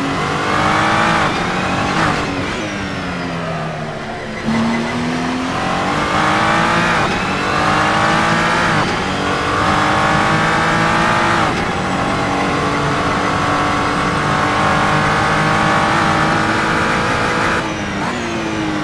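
A racing car engine roars, revving up through the gears and dropping in pitch at each gear change.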